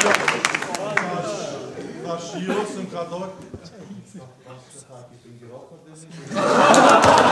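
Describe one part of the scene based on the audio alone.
A man speaks with animation into a microphone in front of an audience.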